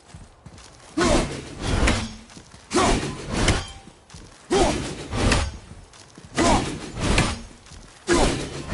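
An axe strikes a wooden pillar with loud, repeated blows.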